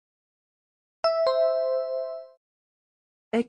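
A bright two-note chime rings once.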